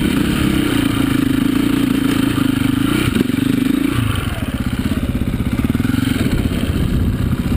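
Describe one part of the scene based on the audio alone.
A dirt bike engine revs loudly up close, rising and falling.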